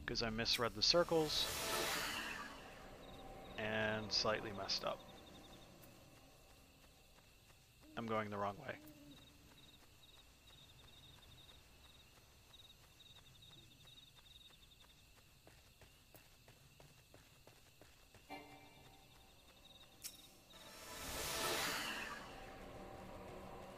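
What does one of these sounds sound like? A magical spell bursts with a bright whoosh.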